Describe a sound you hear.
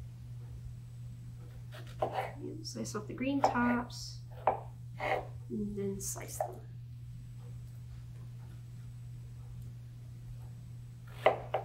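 A knife cuts through fruit on a wooden board.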